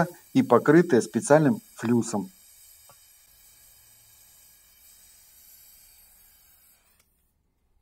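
A gas torch flame hisses softly.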